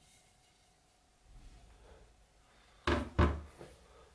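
A chisel is set down on a wooden surface with a knock.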